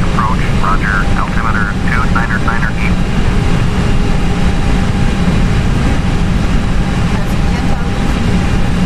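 Jet engines drone with a steady low roar.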